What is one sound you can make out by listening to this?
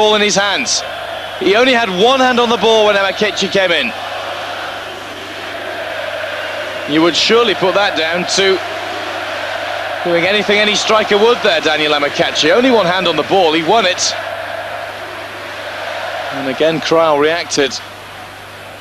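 A stadium crowd roars and murmurs steadily in a large open space.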